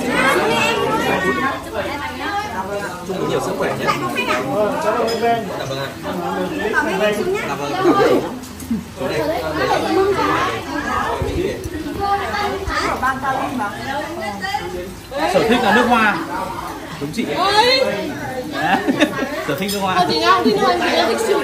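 Several young men talk and laugh together close by.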